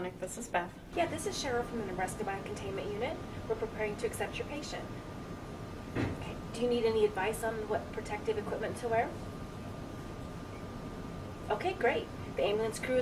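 A middle-aged woman talks calmly into a phone nearby.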